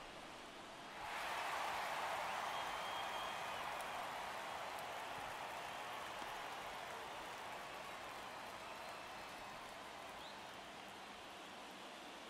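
A large crowd cheers loudly and slowly fades.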